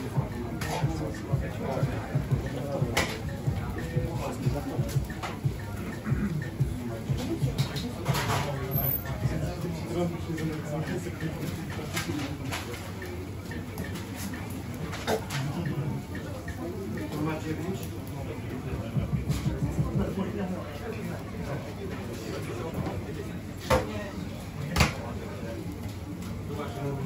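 Many people chatter in a busy, crowded room.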